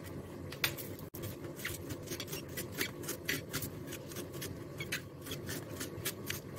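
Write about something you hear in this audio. A knife chops leafy greens on a steel plate with quick taps.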